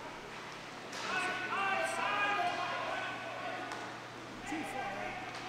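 Players shout to each other across a large echoing hall.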